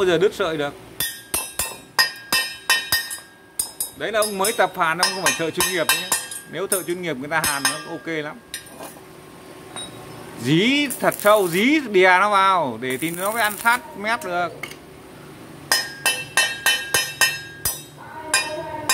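A hammer taps sharply on metal.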